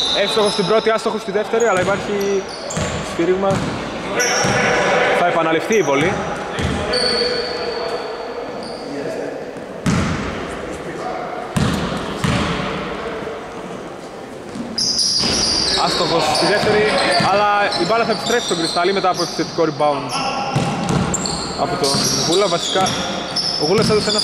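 Men shout and call out to each other in a large echoing gym.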